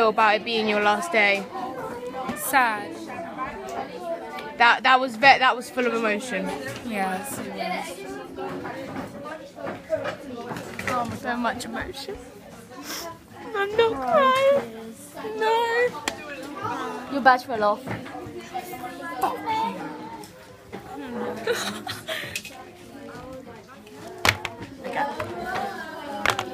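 Teenage girls chatter and laugh close by.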